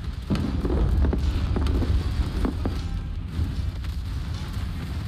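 Deep booming explosions rumble steadily.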